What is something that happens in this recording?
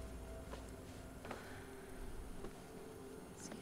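A fire crackles in a fireplace.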